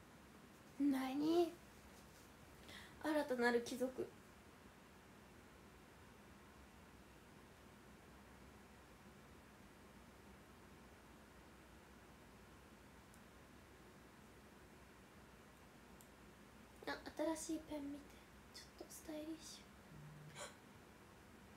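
A young woman speaks close to a microphone, with animation.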